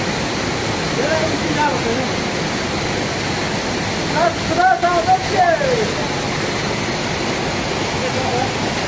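Water rushes and splashes over rocks nearby.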